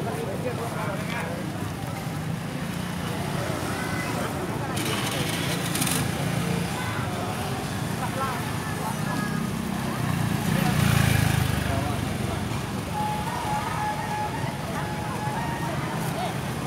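Motorbikes drive by nearby.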